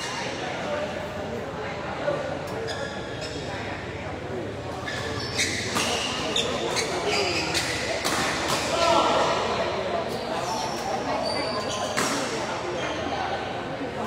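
Shuttlecocks are hit sharply with rackets, again and again.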